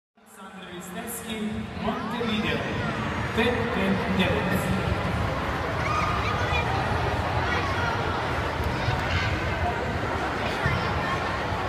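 Music plays loudly through loudspeakers in a large echoing hall.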